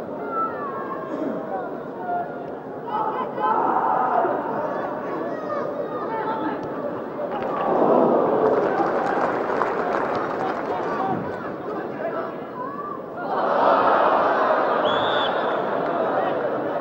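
A large stadium crowd roars and cheers, swelling loudly at times.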